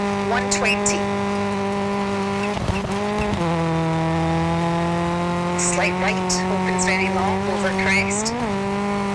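A rally car engine drones at high revs and drops pitch as it shifts gear.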